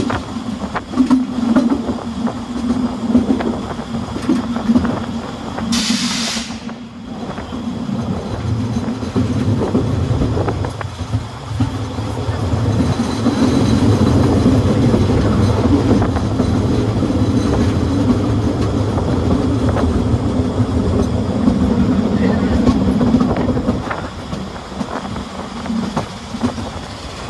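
Wheels clatter and knock on the rails.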